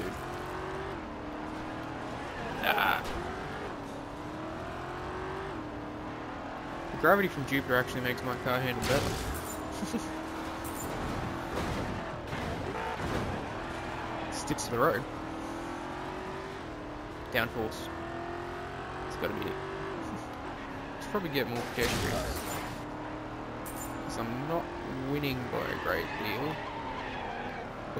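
A video game car engine revs, rising in pitch and dropping with each gear change.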